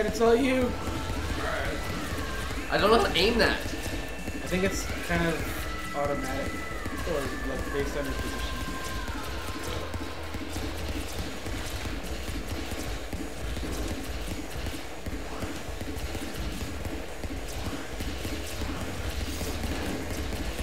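Electronic laser blasts zap and hum from a video game.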